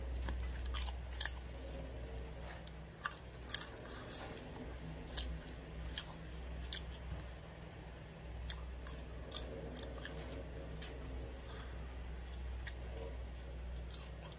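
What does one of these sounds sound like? A boy crunches crispy fries close to the microphone.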